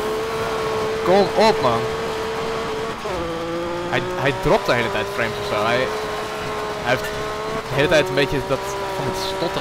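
Tyres skid and crunch on gravel.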